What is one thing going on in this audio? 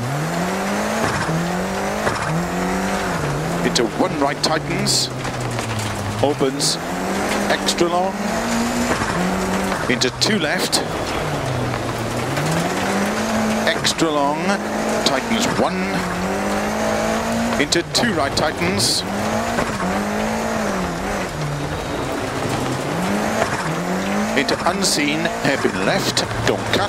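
A rally car engine revs hard, rising and falling as the gears change.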